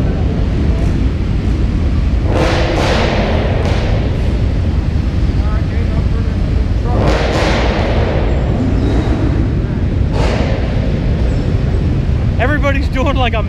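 A truck engine rumbles loudly nearby.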